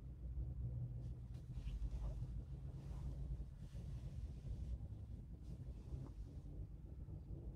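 A cap rustles as a man pulls it onto his head.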